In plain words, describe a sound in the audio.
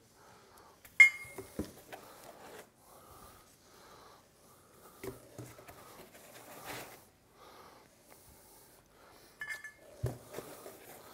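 Heavy metal parts knock softly as they are set down on a table.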